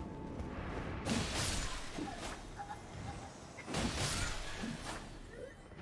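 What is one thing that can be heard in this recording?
Blades swing and strike in a fight.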